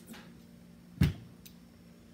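A drinking cup knocks down on a table.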